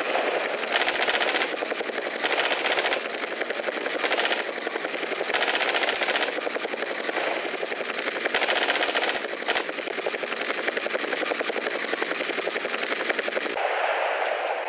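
A helicopter's rotor whirs and chops steadily.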